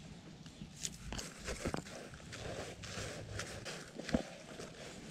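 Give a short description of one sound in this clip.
Leafy plants rustle as they are brushed aside close by.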